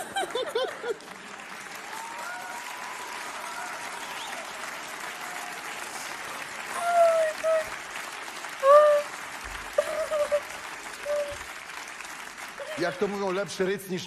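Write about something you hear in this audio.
An audience laughs and roars in a large hall.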